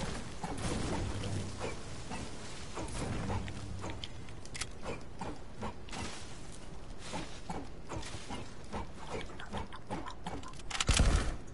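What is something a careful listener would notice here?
Footsteps patter quickly across grass.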